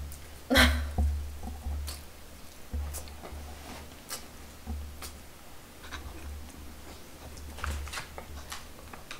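A man chews food loudly and smacks his lips close by.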